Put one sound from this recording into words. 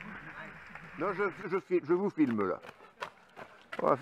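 A man calls out as he runs past.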